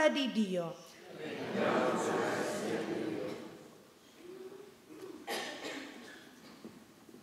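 An elderly woman speaks calmly into a microphone in a large echoing hall.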